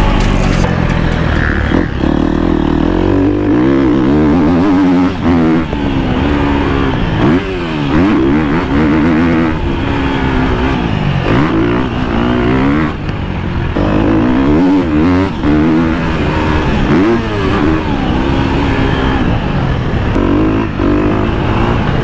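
A motocross bike engine revs up and down loudly as it races.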